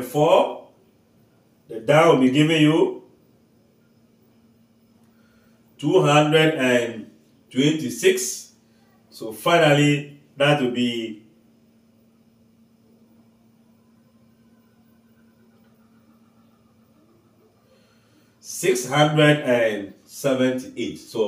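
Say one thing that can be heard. A man explains calmly in short bursts, close to a microphone.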